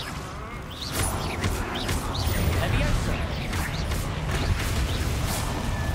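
Fiery blasts rumble and boom.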